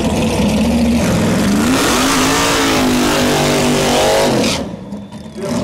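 Tyres squeal and hiss in a burnout.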